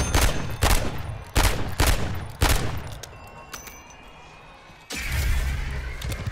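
Footsteps crunch quickly over dirt and gravel.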